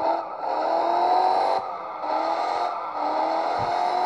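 Tyres screech on pavement.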